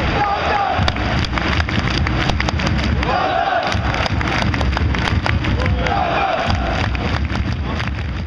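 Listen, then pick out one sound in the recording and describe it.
A large crowd of fans sings and chants loudly in an open stadium.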